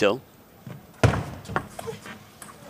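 A table tennis ball clicks sharply against paddles and the table.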